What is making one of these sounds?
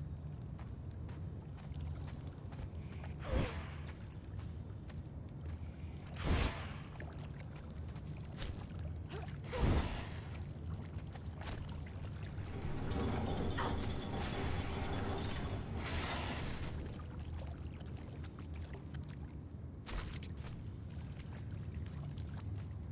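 Footsteps fall on a stone floor.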